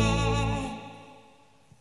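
A band plays a final chord.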